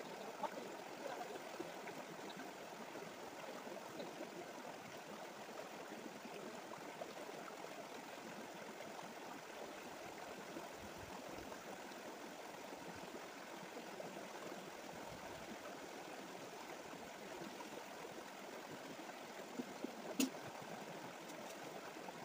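Water splashes as a man wades through a stream.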